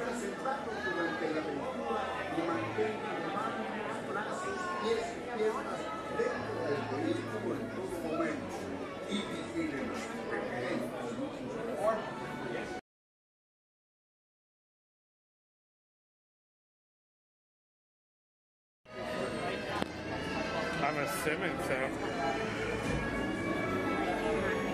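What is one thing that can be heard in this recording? A crowd of people chatter and murmur in an echoing indoor space.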